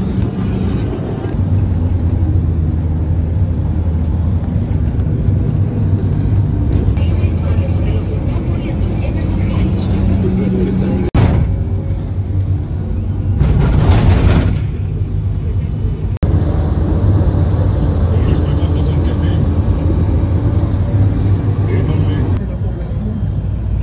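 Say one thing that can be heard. A vehicle's engine and tyres rumble steadily on the road, heard from inside.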